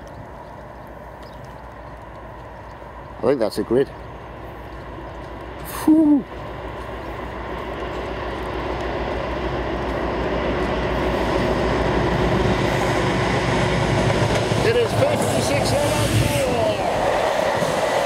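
A diesel train engine rumbles, growing louder as it approaches.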